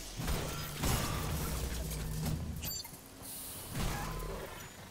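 A weapon strikes with heavy thuds and crashes.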